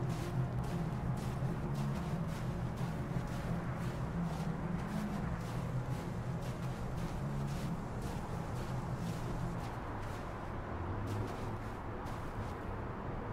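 Footsteps crunch on snowy ground at a steady walking pace.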